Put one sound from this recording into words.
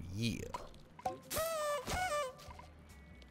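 Coins chime in a quick bright burst.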